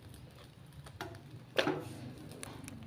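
A metal pot clanks against a charcoal stove.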